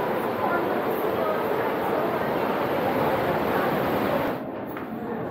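Surf churns and roars through a rocky sea cave.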